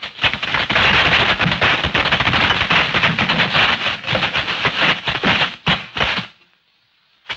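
Men scuffle and stamp noisily.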